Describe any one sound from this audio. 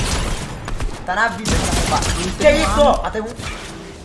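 A young man speaks excitedly into a close microphone.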